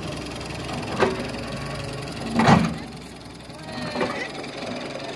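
An excavator bucket thuds and scrapes into the ground.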